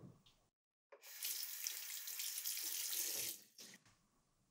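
Water runs from a tap into a basin.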